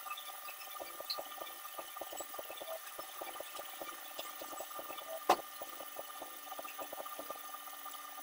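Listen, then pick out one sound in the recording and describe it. A machine runs with a steady, rapid ticking rattle.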